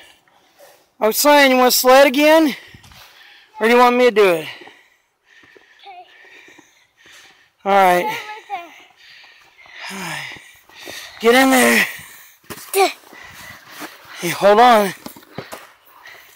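A young child shouts and calls out excitedly nearby.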